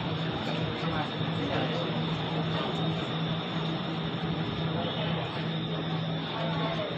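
A train hums steadily.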